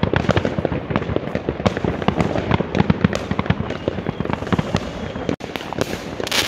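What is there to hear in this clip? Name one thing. Fireworks crackle and pop rapidly in the distance.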